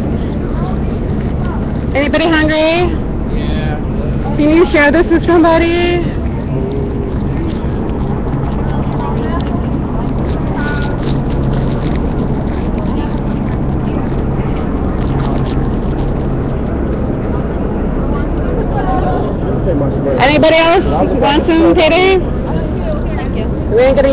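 A crowd chatters and murmurs all around outdoors.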